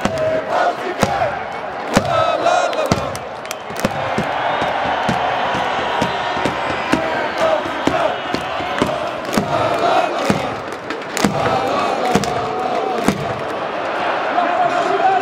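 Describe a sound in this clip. A large crowd of fans chants and cheers loudly in an open stadium.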